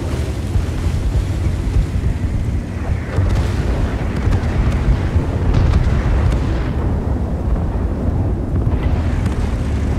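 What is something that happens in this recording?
Tank tracks splash and churn through shallow water.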